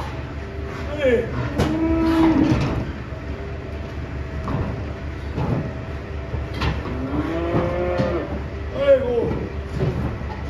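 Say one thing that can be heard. Cattle low and bellow.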